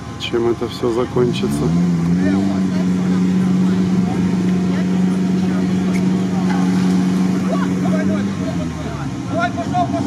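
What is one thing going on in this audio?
An engine revs hard and then holds a steady roar.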